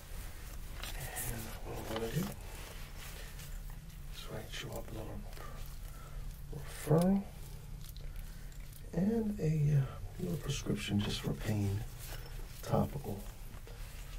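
A man speaks softly and slowly, very close to a microphone.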